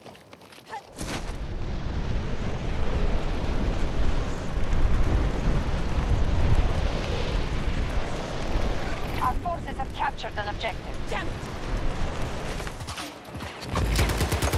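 Wind rushes loudly past a falling body.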